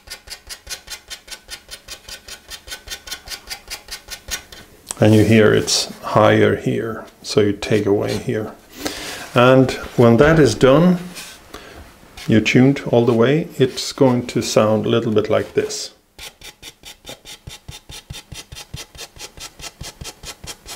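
A knife scrapes wood in quick, even strokes.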